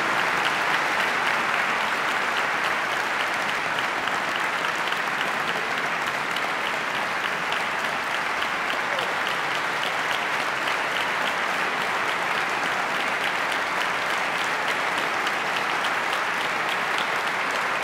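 A large audience applauds steadily in an echoing concert hall.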